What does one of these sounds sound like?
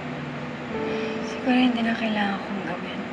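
Another young woman speaks quietly and sadly, close by.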